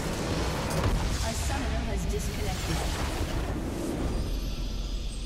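A loud explosion blasts and crumbles.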